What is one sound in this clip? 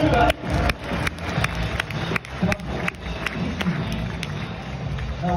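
Spectators clap rhythmically.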